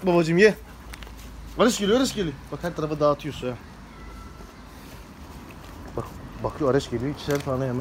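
A dog chews and licks at food.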